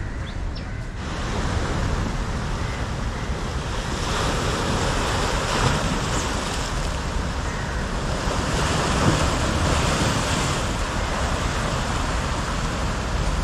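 Waves wash onto a rocky shore.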